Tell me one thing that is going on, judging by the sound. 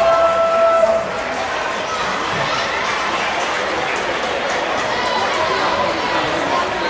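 A crowd of spectators murmurs and chatters in a large echoing hall.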